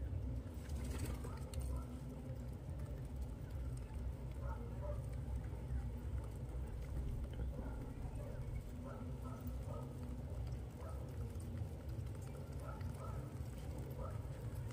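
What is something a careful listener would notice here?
Pigeons peck at grain on a hard surface.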